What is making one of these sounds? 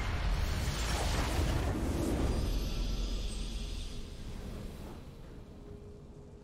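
A triumphant game fanfare swells and then fades.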